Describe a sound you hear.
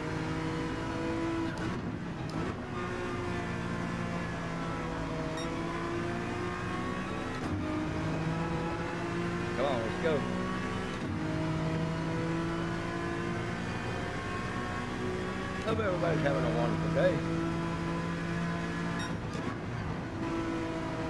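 A racing car engine roars, its pitch rising and dropping as gears shift.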